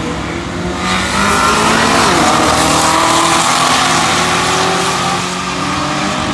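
A race car roars past at full speed.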